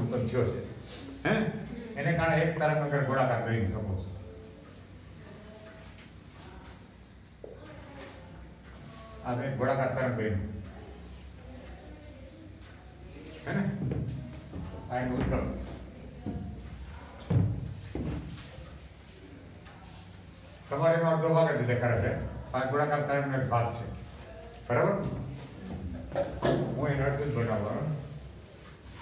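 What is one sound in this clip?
A man speaks calmly nearby, explaining in bursts with pauses.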